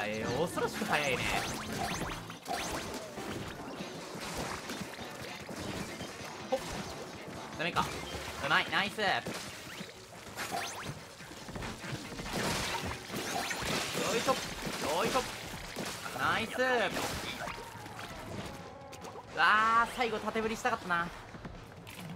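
Ink guns splatter and splash in rapid bursts.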